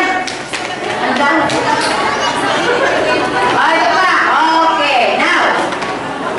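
Young children chatter and shout nearby.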